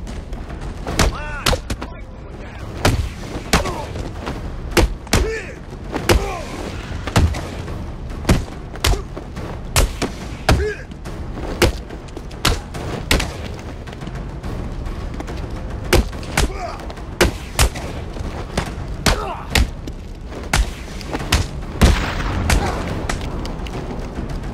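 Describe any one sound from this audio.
Punches and kicks land with heavy thuds in a brawl.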